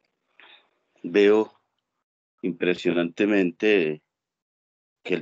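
A man speaks with animation through an online call.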